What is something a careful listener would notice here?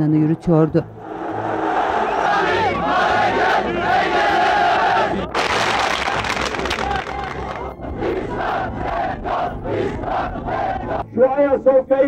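A large crowd chants and cheers outdoors.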